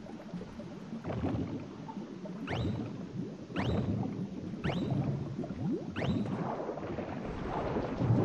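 Bubbles gurgle and pop underwater.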